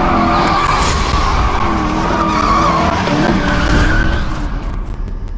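Tyres screech loudly as cars drift.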